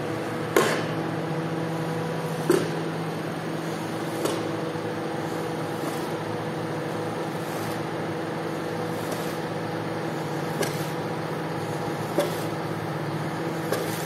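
A squeegee scrapes and swishes soapy water across a wet rug.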